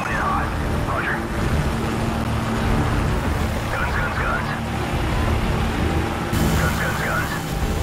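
Helicopter rotors thump loudly and steadily close by.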